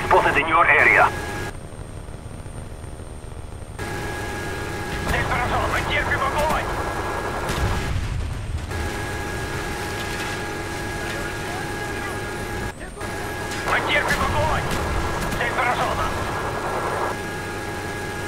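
A helicopter's rotor drones and thumps steadily.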